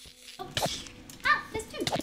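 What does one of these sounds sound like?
A sword strikes small creatures with quick hits.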